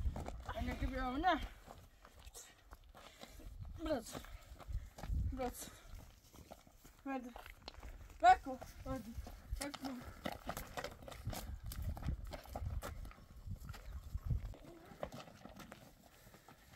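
Footsteps crunch on stony ground.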